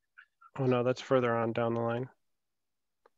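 A man speaks briefly and calmly through a headset microphone.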